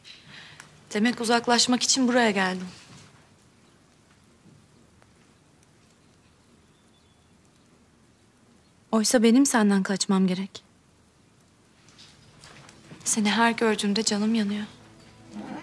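A young woman speaks softly and earnestly, close by.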